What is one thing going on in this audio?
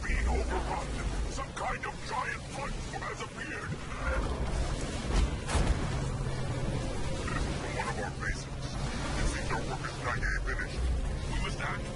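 Laser weapons fire in quick bursts.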